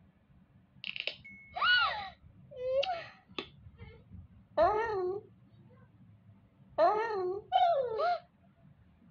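High-pitched cartoon cat sounds squeak and chirp from a small phone speaker.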